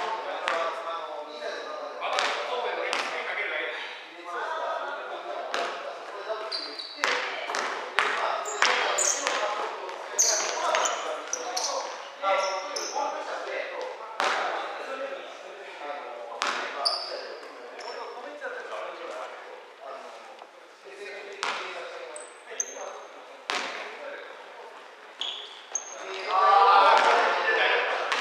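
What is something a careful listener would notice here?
Young people call out and talk across an echoing hall.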